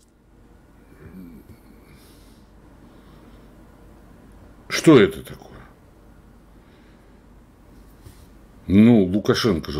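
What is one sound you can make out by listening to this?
An elderly man speaks in short bursts, heard through a microphone.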